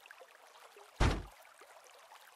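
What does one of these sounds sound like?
A heavy wooden bench thuds into place.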